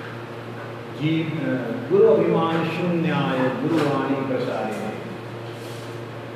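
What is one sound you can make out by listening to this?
An elderly man speaks calmly, close to a microphone.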